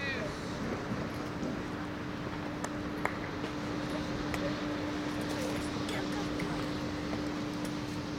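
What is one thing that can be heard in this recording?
A tennis player's shoes scuff softly on a hard court.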